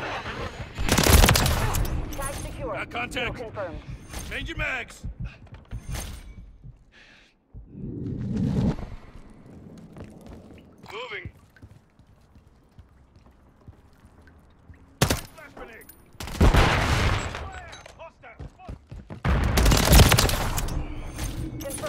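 Rapid gunfire rattles loudly in short bursts.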